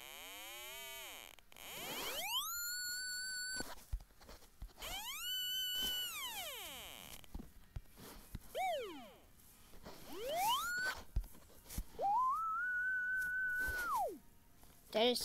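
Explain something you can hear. An electronic synthesizer tone glides up and down in pitch, buzzing and bright at times and pure at others.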